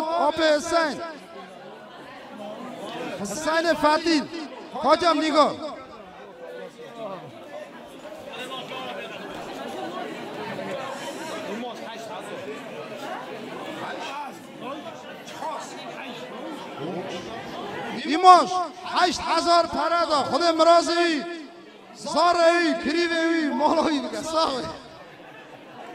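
A man sings loudly through a microphone and loudspeakers, in bursts.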